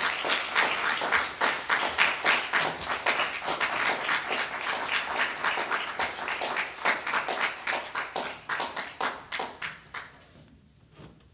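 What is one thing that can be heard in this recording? An audience applauds in a hall, then fades out.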